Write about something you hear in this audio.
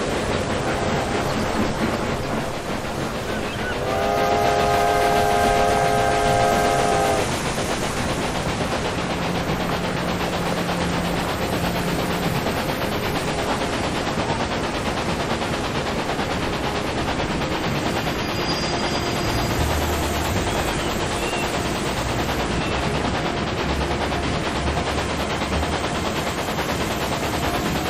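A steam locomotive rumbles and clatters steadily along the rails.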